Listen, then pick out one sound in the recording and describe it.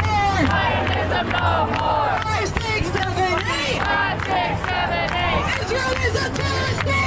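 A large crowd of marchers chants loudly outdoors.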